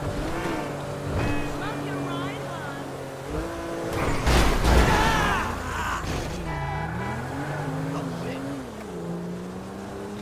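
A car engine revs as the car accelerates.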